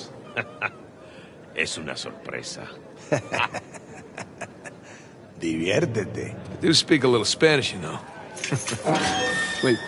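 A man laughs briefly.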